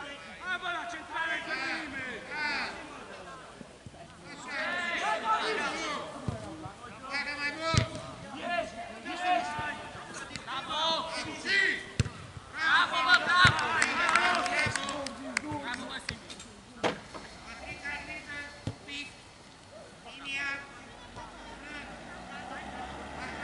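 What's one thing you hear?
Men shout and call to each other across an open outdoor pitch.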